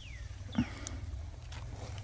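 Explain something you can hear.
A metal tool scrapes and taps in dry soil.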